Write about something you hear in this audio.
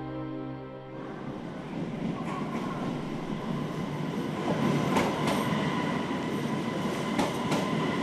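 A train rumbles loudly into a station.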